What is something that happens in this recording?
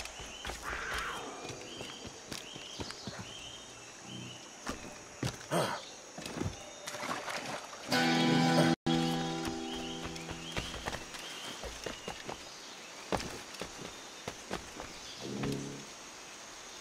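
Footsteps thud and rustle quickly through undergrowth.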